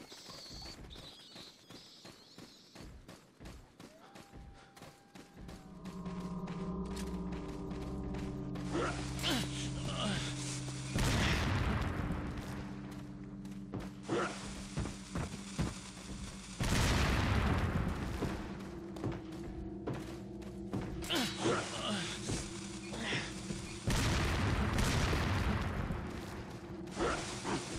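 Footsteps crunch through dry leaves and brush.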